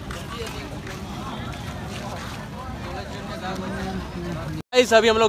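A crowd of men and women chatter outdoors in the open air.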